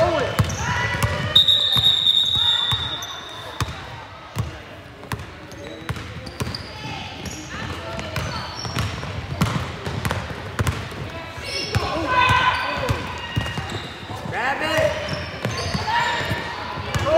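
Young girls shout and call out to each other during play.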